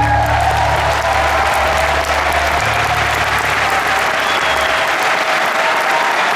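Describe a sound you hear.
Guitars strum and ring out.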